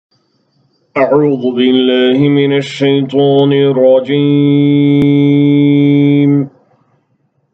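A man chants in a slow, drawn-out voice close to a microphone.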